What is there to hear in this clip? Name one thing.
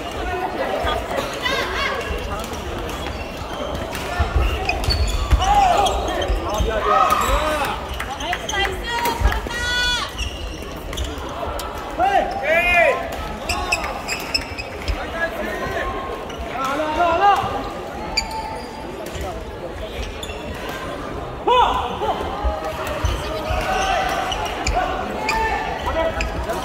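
Many people talk and call out in a large echoing hall.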